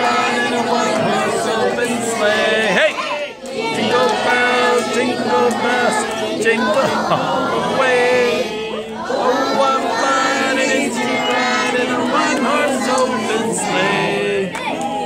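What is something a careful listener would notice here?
Many people talk and chatter together in a large, busy room.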